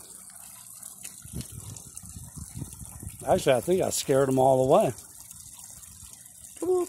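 A small waterfall trickles and splashes steadily into a pond.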